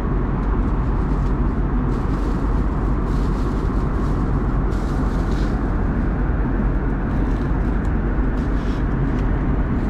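Aircraft engines drone with a steady, low roar.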